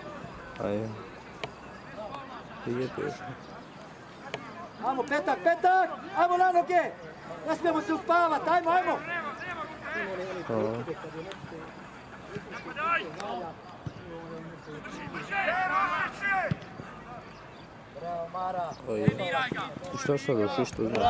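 Men in a crowd of spectators shout and call out nearby, outdoors.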